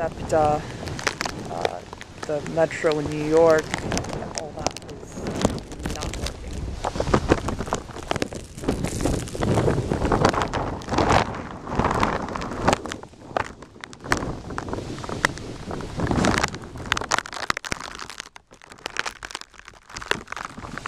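Strong wind gusts and roars outdoors.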